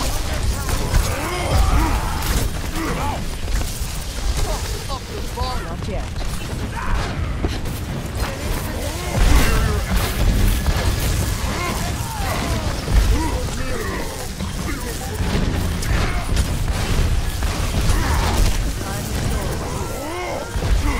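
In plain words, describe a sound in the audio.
Gunfire and blasts thud loudly.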